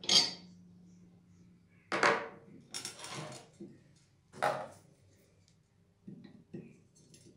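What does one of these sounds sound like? Heavy metal parts clank and scrape against each other.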